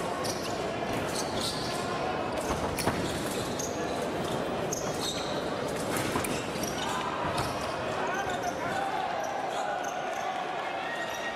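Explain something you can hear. Fencers' shoes squeak and thud on the piste.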